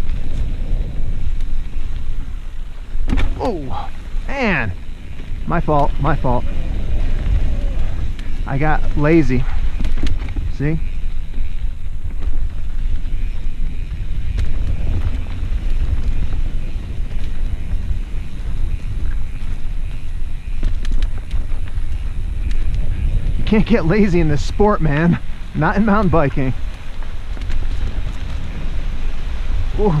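Mountain bike tyres roll and crunch down a dirt singletrack.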